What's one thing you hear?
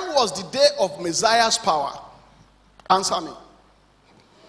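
An elderly man speaks with animation through a microphone, in a large echoing hall.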